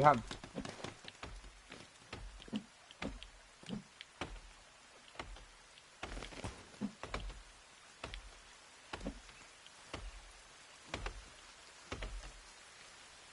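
Soft menu clicks sound repeatedly as items are picked.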